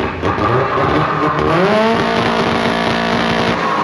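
A race car engine revs loudly and roars.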